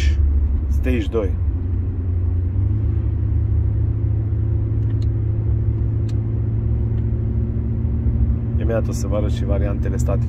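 A car's engine and tyres hum steadily from inside the cabin.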